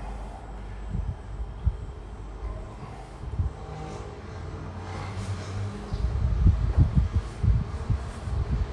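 Soft thumps sound on a floor mat.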